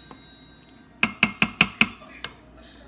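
A wooden spoon knocks a few times against the side of a metal pot.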